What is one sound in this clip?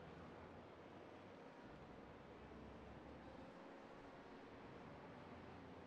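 A race car engine drones steadily through a game.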